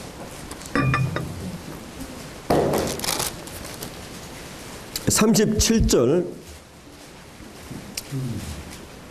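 A middle-aged man speaks slowly and solemnly into a microphone, with pauses.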